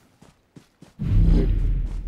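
A smoke grenade bursts nearby with a low boom.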